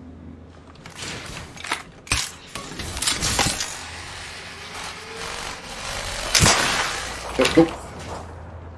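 A gun's metal parts click and clack as it is handled.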